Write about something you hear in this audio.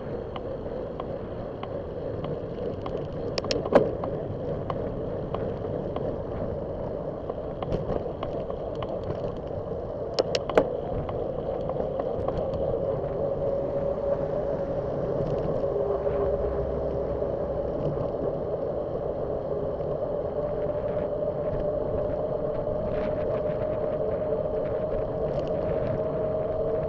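Wind and tyre noise rush past outdoors.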